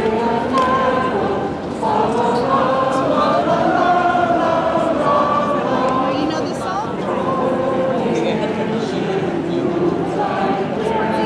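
A large outdoor crowd of men and women chatters and calls out all around.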